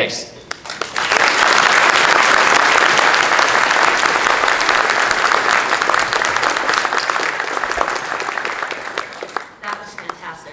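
A large audience applauds loudly, then the clapping slowly dies down.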